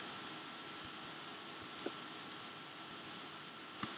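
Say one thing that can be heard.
Wooden blocks are set down with short knocks.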